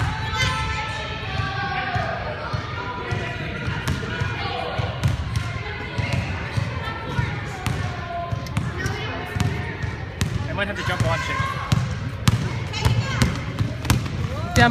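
Children shout and call out excitedly in a large echoing gym.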